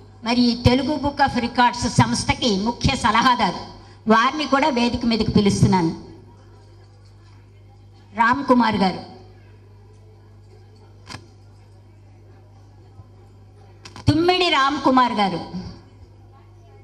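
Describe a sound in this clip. A woman speaks through a loudspeaker in short bursts.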